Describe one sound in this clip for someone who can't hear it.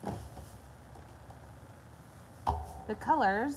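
Plastic bottles clunk as they are set down on a wooden board.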